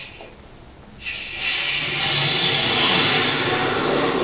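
Water gurgles and splashes loudly in a tank.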